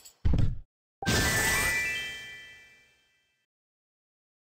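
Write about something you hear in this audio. A short chiming jingle plays as points are scored.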